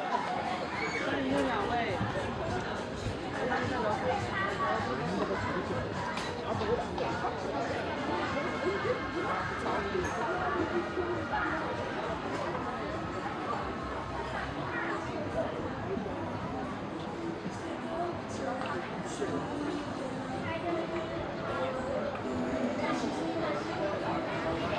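A crowd of people chatters nearby, outdoors.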